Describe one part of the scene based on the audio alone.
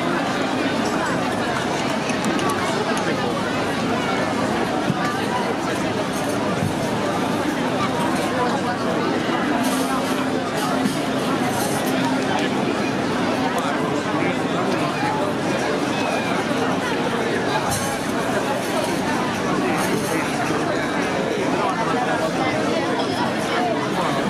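A folk band plays lively music over loudspeakers outdoors.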